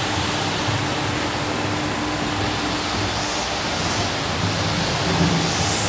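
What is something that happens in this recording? A carpet washing machine whirs and hums steadily with spinning brushes.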